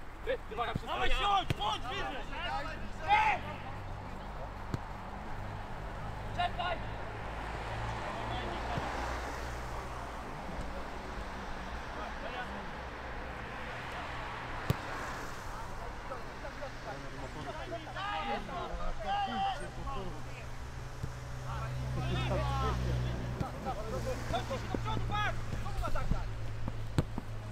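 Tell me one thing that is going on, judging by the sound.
Young men shout to one another across an open field.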